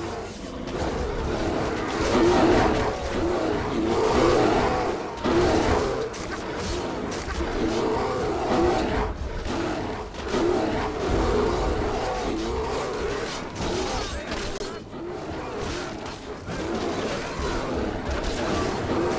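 Many beasts growl and roar in a chaotic fight.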